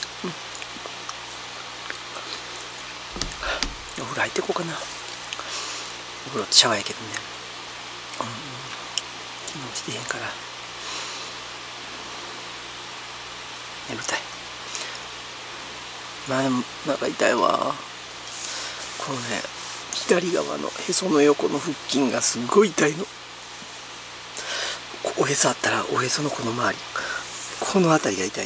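A woman speaks close by, tearfully and haltingly, with sobbing breaths.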